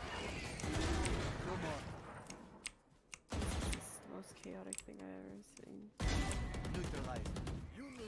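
A rifle fires short bursts of shots.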